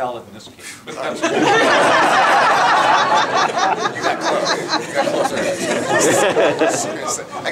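A group of people laugh loudly.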